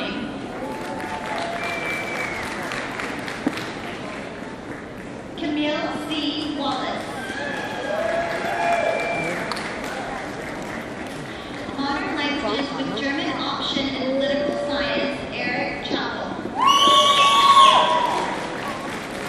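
A woman reads out calmly through a microphone and loudspeakers in a large hall.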